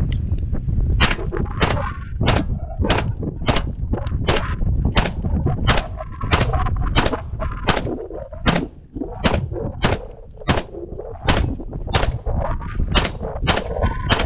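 Gunshots crack outdoors one after another at a steady pace.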